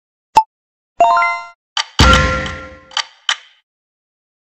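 Short bright chimes sound from the game.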